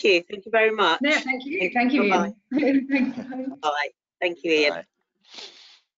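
A woman speaks warmly over an online call.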